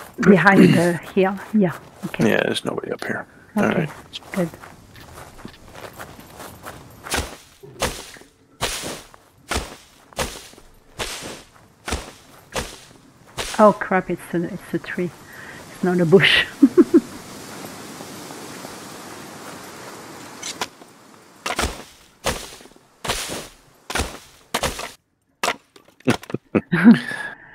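Footsteps crunch on dry ground at a steady walking pace.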